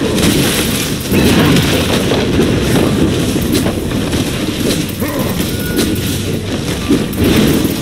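Combat effects clash and crackle in quick bursts.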